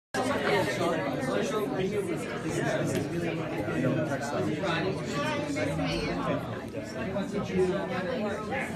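Many adult men and women chatter at once nearby.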